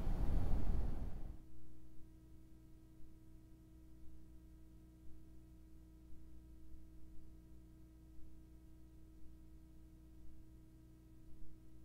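A truck engine idles with a low, steady hum.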